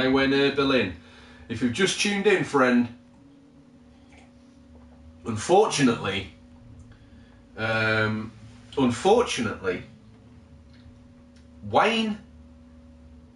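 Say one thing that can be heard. A man talks casually into a microphone in short bursts with pauses.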